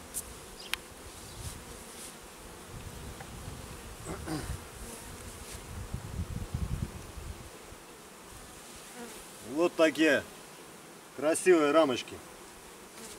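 Wooden hive parts knock and scrape as they are handled.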